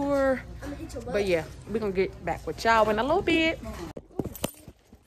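A young woman talks close up, with animation.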